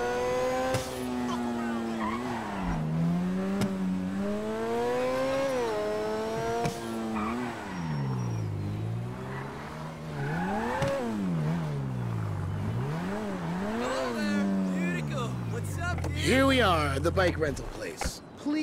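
A sports car engine roars, revving up and down as the car speeds along.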